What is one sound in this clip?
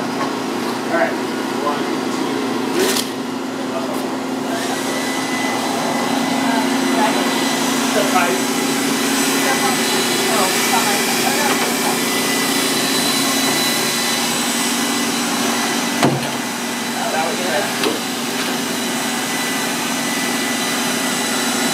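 A heavy wooden panel scrapes and bumps against the floor.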